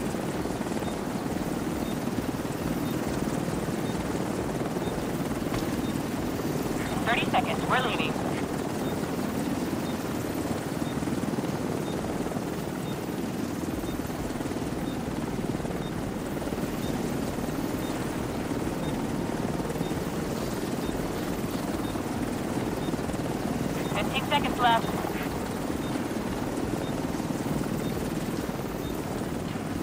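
Flares hiss and burn steadily.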